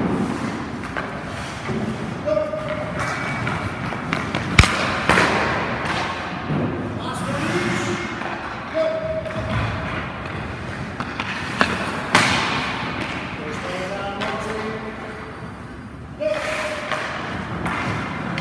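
Ice skate blades scrape and hiss across the ice in an echoing rink.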